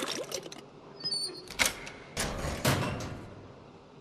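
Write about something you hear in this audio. A metal locker door clanks open.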